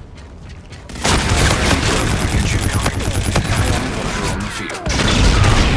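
Rapid gunfire crackles close by.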